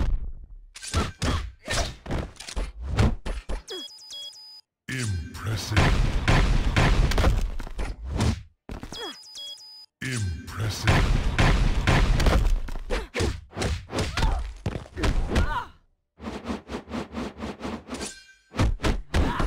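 Punches and kicks land with heavy thuds and smacks.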